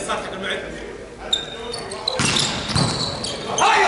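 A volleyball is struck with a sharp slap in a large echoing hall.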